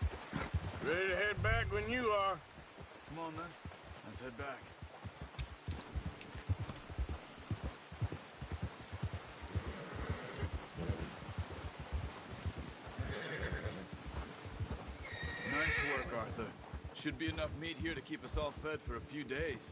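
A man speaks calmly, nearby.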